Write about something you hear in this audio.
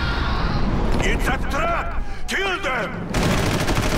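An elderly man shouts urgently.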